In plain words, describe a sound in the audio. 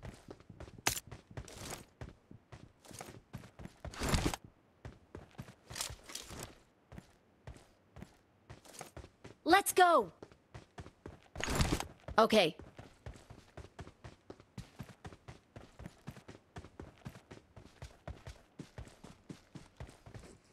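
Soft, rhythmic rustling steps crawl through grass.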